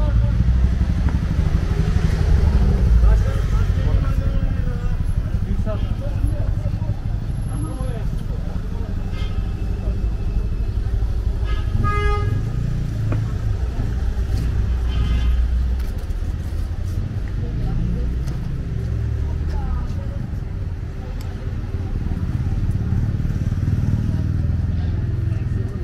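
Voices of passers-by murmur nearby.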